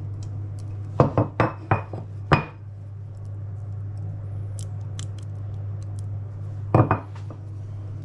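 Ceramic dishes knock and clink against a wooden counter.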